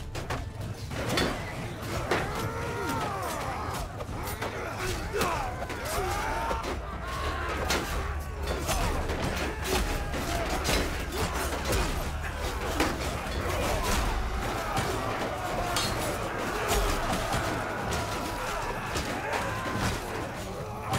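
Metal weapons clash and strike against wooden shields.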